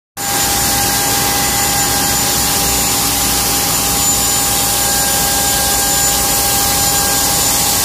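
A machine hums and whirs loudly and steadily, with a high whine.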